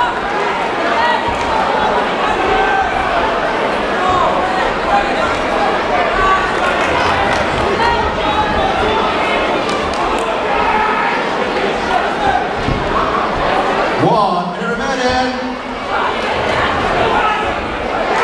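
A crowd of spectators chatters and shouts throughout a large echoing hall.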